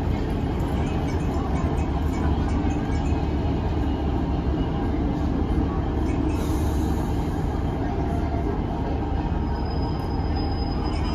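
A passenger train rumbles past close by on the tracks.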